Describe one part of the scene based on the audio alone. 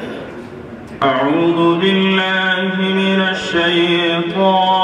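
A young man chants melodiously through a microphone and loudspeakers.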